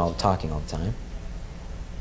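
A man speaks briefly into a microphone in a large hall.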